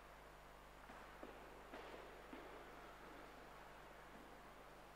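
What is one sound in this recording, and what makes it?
A man speaks quietly at a distance in a large echoing hall.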